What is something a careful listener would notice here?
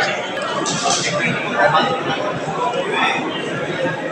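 Adults chatter and talk nearby in a room with some echo.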